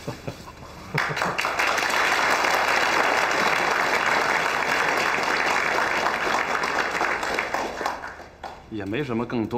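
A crowd applauds loudly.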